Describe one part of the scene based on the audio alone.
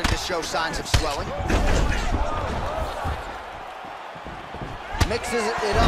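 A hard kick lands with a sharp thud.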